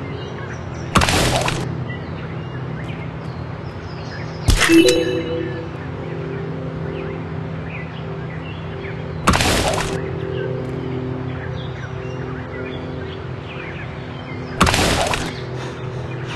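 Heavy punches land with sudden loud thuds, a few seconds apart.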